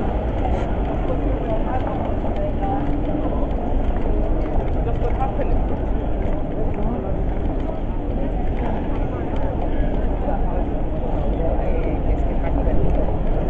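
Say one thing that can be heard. Busy city street noise rumbles steadily outdoors.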